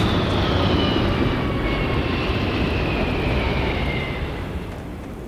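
A spacecraft's engines roar overhead, falling in pitch as it fades into the distance.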